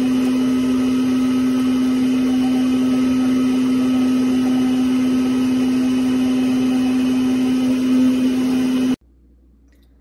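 A juicer motor whirs steadily.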